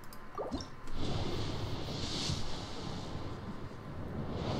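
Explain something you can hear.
A magical whoosh rises and sweeps past as a shooting star streaks across the sky.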